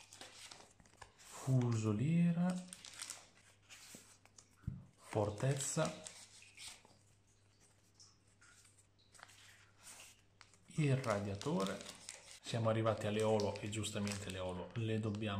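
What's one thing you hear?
Playing cards slide and rustle against each other.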